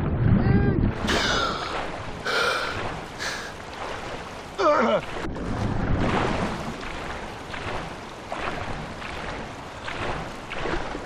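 Water splashes and laps as a swimmer breaks the surface and paddles.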